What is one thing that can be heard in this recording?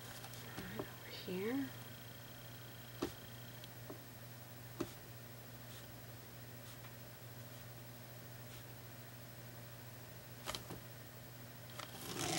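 A small brush taps and strokes softly on a board.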